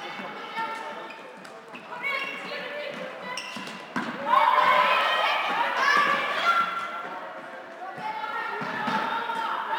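Young women shout and call out across an echoing indoor hall.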